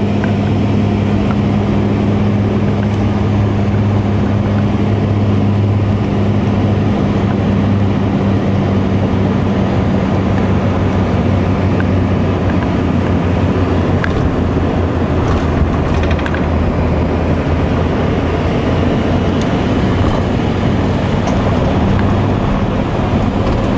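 A propeller engine drones loudly and steadily close by.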